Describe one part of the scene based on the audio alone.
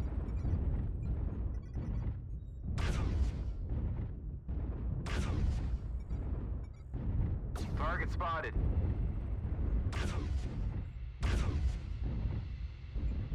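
Laser weapons fire in sharp, sweeping blasts.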